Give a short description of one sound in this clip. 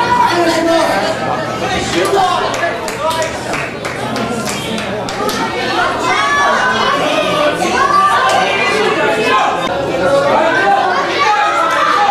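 A crowd of spectators cheers and shouts in an echoing hall.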